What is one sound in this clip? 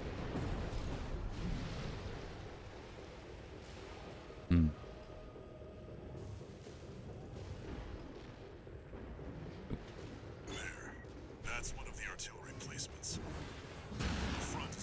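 Thrusters roar steadily.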